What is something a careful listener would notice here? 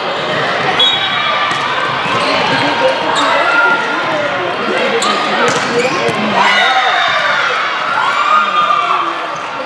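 Players call out and shout in a large echoing gym.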